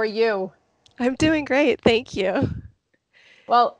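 A second woman speaks over a headset microphone on an online call.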